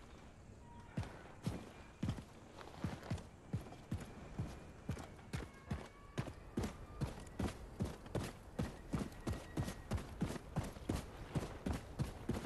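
Footsteps thud steadily on hollow wooden boards.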